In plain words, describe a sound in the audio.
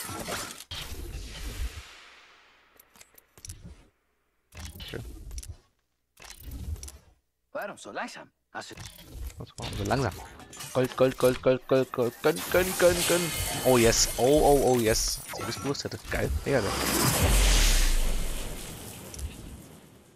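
A deep whoosh swells and fades.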